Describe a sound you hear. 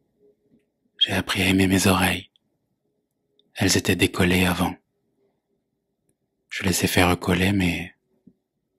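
A man speaks softly and close up, in short phrases with pauses.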